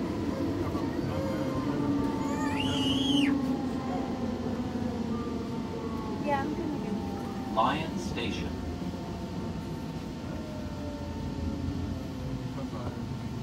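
Train wheels screech on the rails as the train slows into a station.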